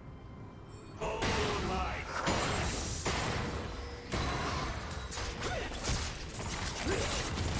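Game spell effects and weapon hits burst and clash in a fight.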